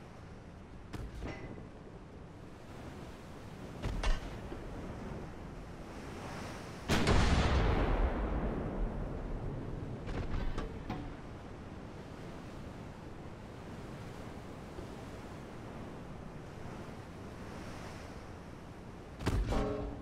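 Heavy ship guns fire with deep booms.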